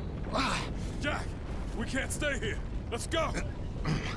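A young man shouts urgently to another.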